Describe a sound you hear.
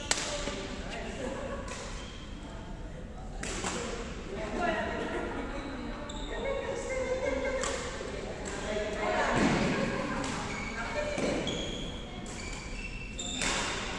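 Many people chatter in the background of a large echoing hall.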